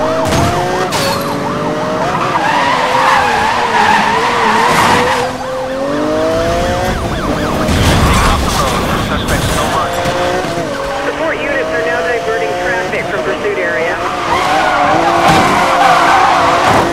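A sports car engine roars and revs, rising and falling in pitch.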